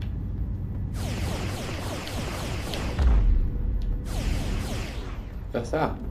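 Laser shots fire in rapid bursts with a rushing sweep.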